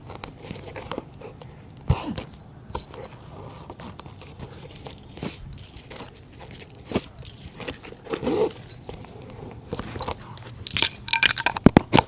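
Leather rustles and creaks as a shoe is handled and worked on.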